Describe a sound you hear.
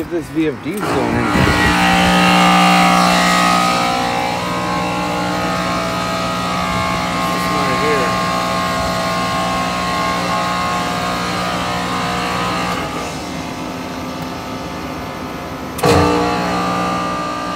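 Compressors hum steadily and loudly close by.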